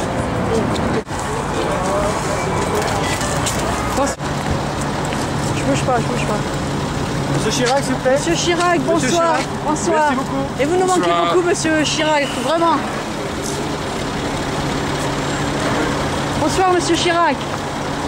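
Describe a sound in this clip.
A crowd murmurs and chatters nearby.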